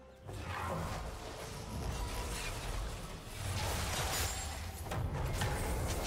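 Video game combat effects whoosh, clash and crackle.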